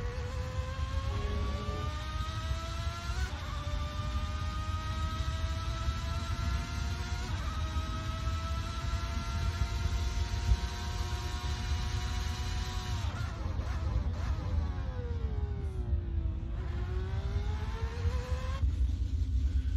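A racing car engine whines loudly, climbing in pitch through gear changes, then dropping and rising again.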